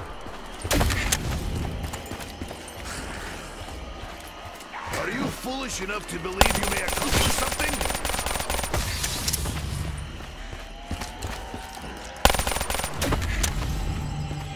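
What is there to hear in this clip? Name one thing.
A gun fires rapid bursts of loud shots.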